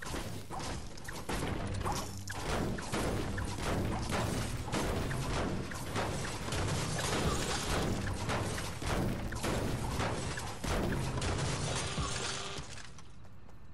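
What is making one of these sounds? A pickaxe strikes metal again and again with loud, rapid clangs.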